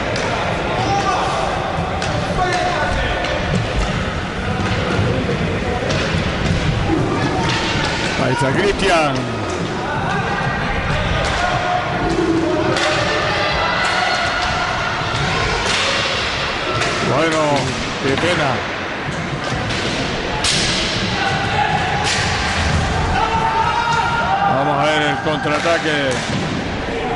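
Roller skates rumble and scrape on a wooden floor.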